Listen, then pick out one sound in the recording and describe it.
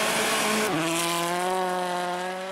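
Snow sprays hard from spinning tyres.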